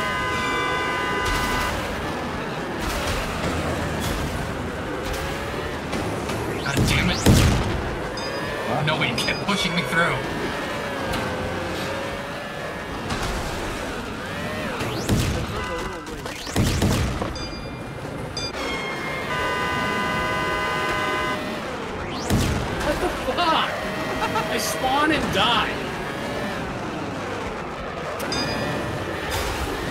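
Small toy car engines whine and buzz as they race.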